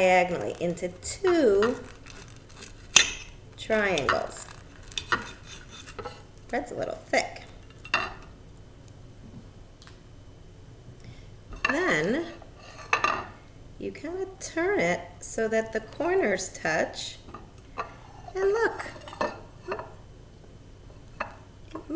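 A knife scrapes and cuts on a plate.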